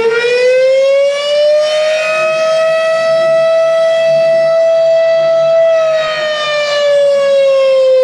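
A siren wails loudly, rising in pitch, holding steady, then falling.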